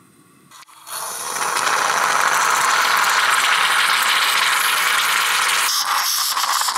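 A coffee pot gurgles and hisses as it boils.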